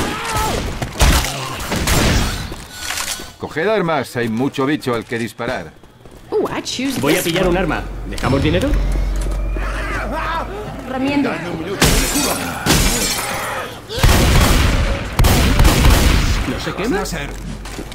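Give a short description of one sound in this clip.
A shotgun fires in loud bursts.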